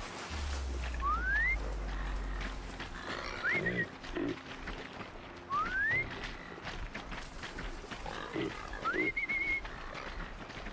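A mechanical creature gives rising electronic chirps.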